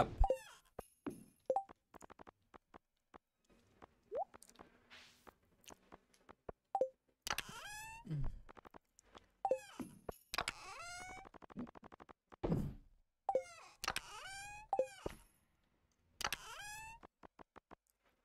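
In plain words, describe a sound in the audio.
Short chiming game menu sounds play as menus open and close.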